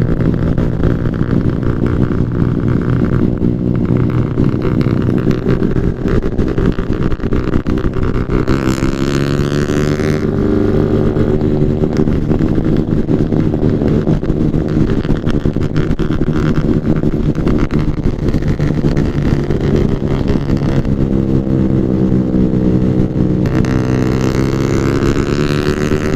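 A motorcycle engine hums steadily while riding, rising and falling in pitch.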